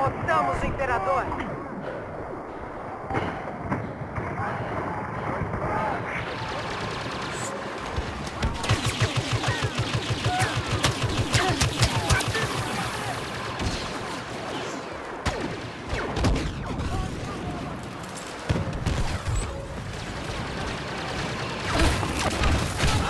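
Blaster rifles fire in rapid bursts.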